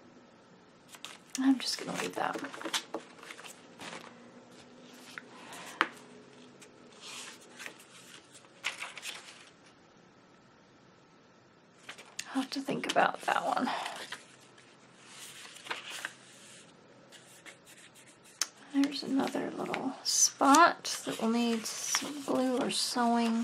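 Paper rustles and crinkles as pages are handled and turned.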